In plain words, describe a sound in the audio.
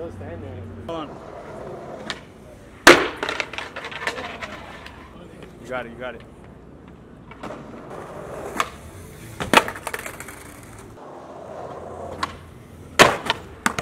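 Skateboard wheels roll and rumble over stone pavement.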